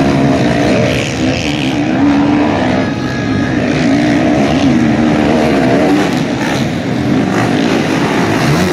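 A motorcycle engine revs and whines, rising and falling in pitch.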